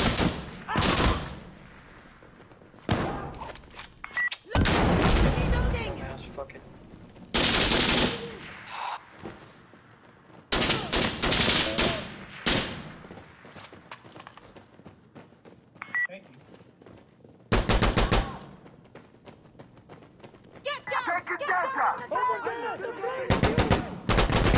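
Gunshots ring out in loud bursts that echo through a large hall.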